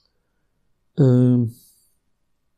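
A middle-aged man speaks a short phrase calmly into a close microphone.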